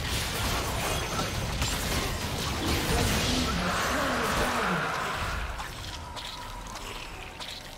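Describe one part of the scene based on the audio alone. Fantasy game spells crackle and burst during a fight.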